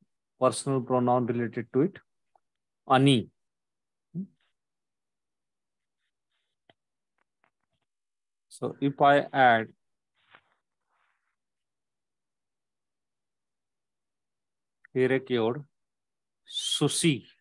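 A man speaks calmly and slowly into a microphone, in short phrases with pauses.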